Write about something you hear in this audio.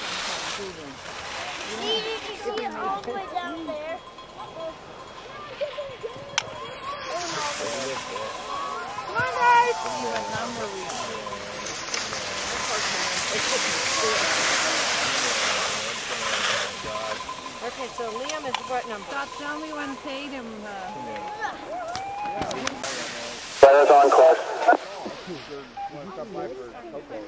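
Skis scrape and hiss across hard snow.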